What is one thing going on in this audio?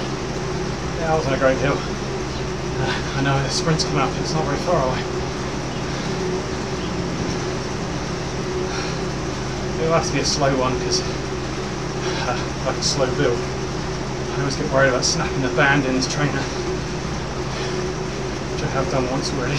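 A young man talks casually into a nearby microphone, in short bursts.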